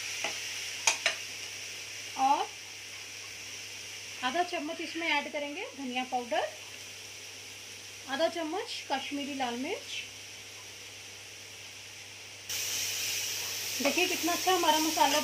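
A metal spoon scrapes and stirs in a pan.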